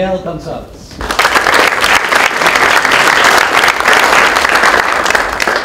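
A crowd applauds loudly.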